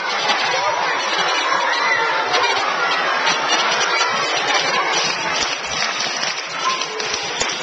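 A large crowd of children chatters and shouts loudly in an echoing hall.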